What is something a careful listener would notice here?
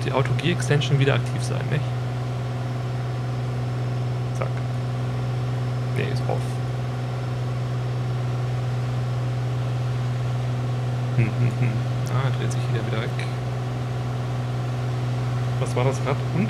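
A man talks casually into a close microphone.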